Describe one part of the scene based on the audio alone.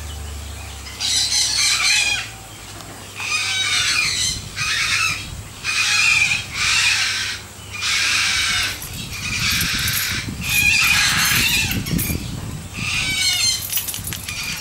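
A cockatoo screeches loudly and harshly in repeated bursts close by.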